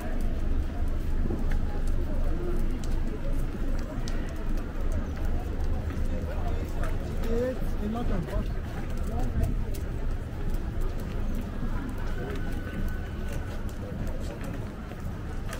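Footsteps tap on a pavement.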